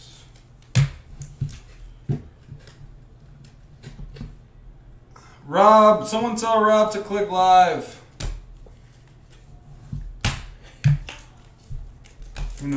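Trading cards rustle and click as hands flip through a stack.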